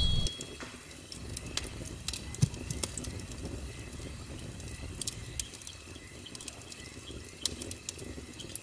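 A large bonfire crackles and pops outdoors.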